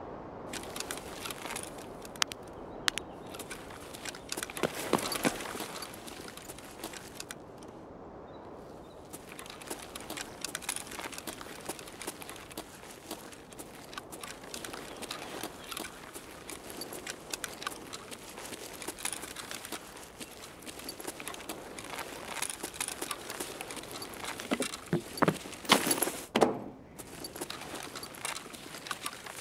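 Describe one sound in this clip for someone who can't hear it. Footsteps tread steadily on hard, gritty ground.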